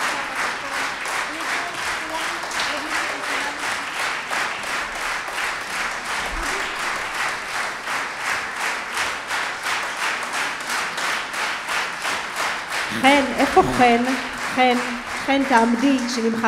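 A women's choir sings in a reverberant hall.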